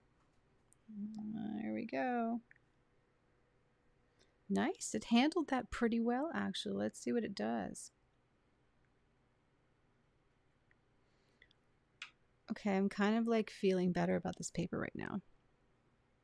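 A woman speaks calmly into a nearby microphone.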